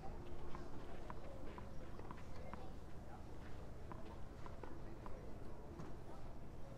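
A tennis ball bounces repeatedly on a clay court.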